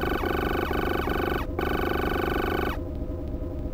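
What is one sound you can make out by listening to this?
Electronic beeps chirp rapidly, then stop.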